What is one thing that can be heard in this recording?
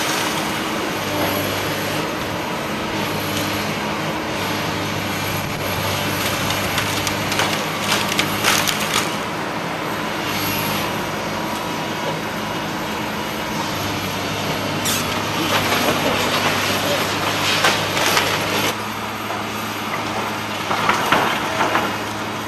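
A diesel tracked excavator engine rumbles.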